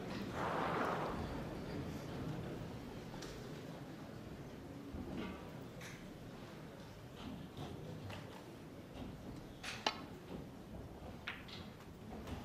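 Snooker balls knock against each other.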